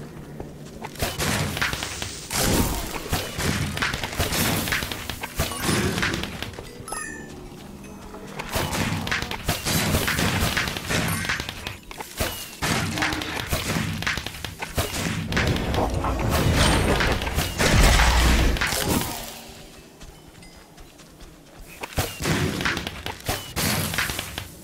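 Fireworks burst with loud bangs and crackles, again and again.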